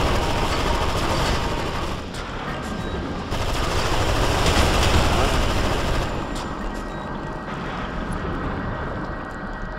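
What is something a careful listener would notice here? Energy beams crackle and hiss in bursts.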